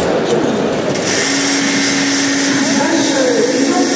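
A milking machine hums steadily.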